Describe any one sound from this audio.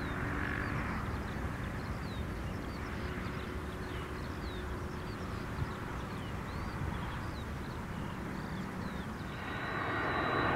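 A jet airliner's engines roar far off as it rolls along a runway.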